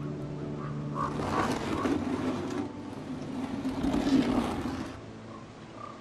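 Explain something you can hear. A wooden crate scrapes across the ground.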